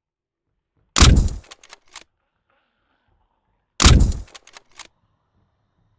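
A rifle fires two loud shots that echo briefly.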